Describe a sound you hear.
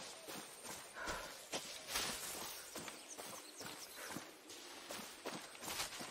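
Footsteps rustle through leafy undergrowth at a quick, steady pace.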